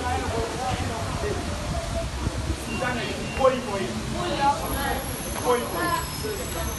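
A crowd of people talks and calls out nearby outdoors.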